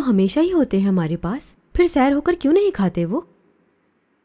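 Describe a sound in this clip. A young woman speaks quietly and earnestly, close by.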